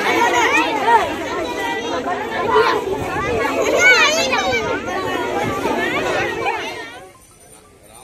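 A crowd of young children chatter and shout loudly close by.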